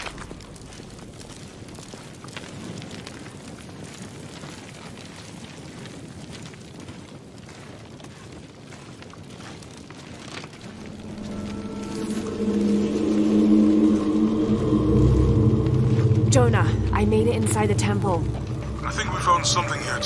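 Fire crackles nearby.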